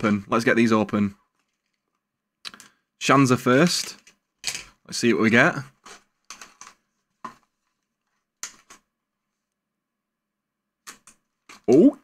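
Cardboard packaging rustles and scrapes as a box is opened.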